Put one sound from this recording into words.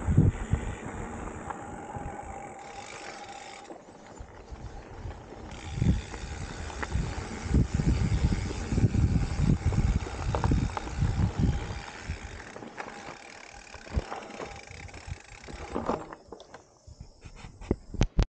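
Mountain bike tyres crunch over a gravel and dirt trail.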